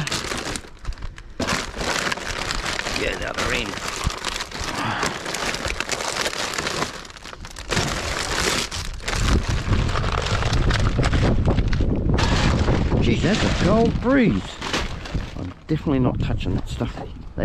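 Plastic bags and wrappers rustle and crinkle as gloved hands dig through rubbish.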